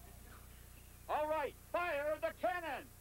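An older man speaks into a handheld microphone outdoors.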